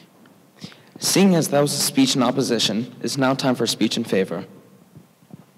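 A young man speaks clearly in a large echoing hall.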